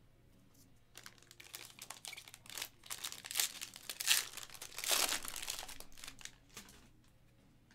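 A plastic wrapper crinkles and tears.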